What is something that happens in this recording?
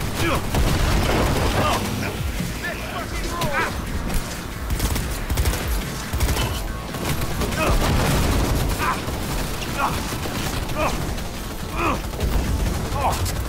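Explosions and impacts crash loudly.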